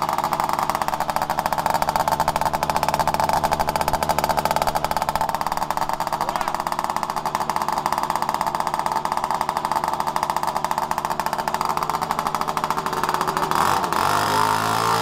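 A two-stroke Puch Maxi moped engine idles.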